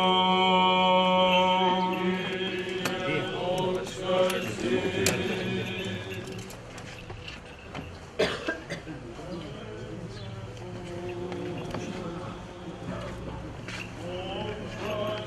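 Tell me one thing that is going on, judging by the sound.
Men chant together loudly in a steady, drawn-out tone outdoors.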